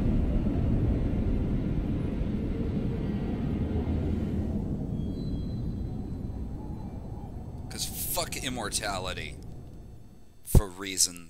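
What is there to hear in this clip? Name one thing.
A deep rushing roar slowly fades.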